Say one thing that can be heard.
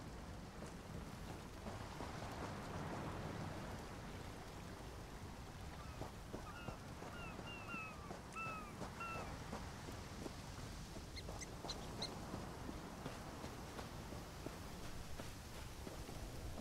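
Footsteps run over grass and dirt.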